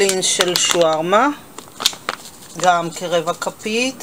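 A plastic spice packet crinkles in a hand.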